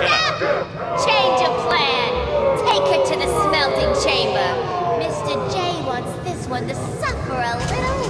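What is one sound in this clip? A young woman shouts orders in a taunting, lively voice.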